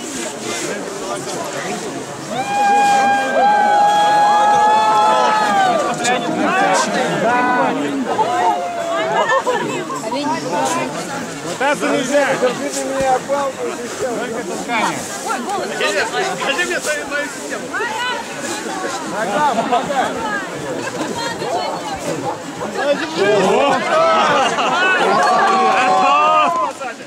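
A crowd of people talks and murmurs outdoors.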